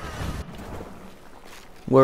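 A loud blast bursts and rocks scatter.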